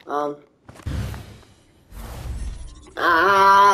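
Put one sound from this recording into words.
An explosion bursts with a shattering crash.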